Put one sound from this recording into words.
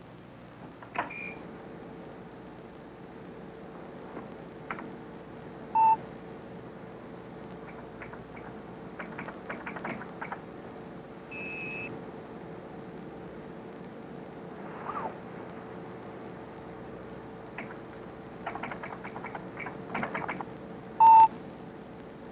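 A computer beeps with short high tones.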